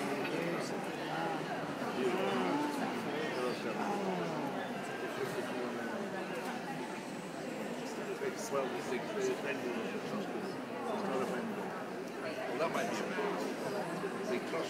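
A woman talks calmly nearby in an echoing hall.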